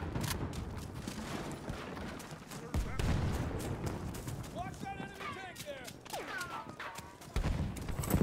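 Footsteps thud quickly over dirt.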